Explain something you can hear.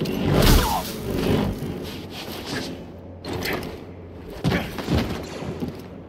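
Lightsaber blades clash with sharp crackling hits.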